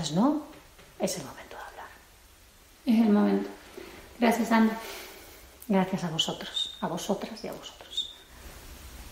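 A woman speaks calmly and warmly nearby.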